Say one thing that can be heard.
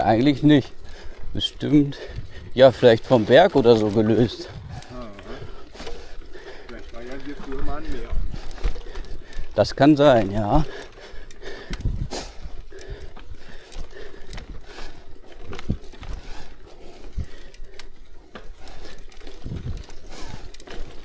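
Bicycle tyres crunch and rattle over loose gravel.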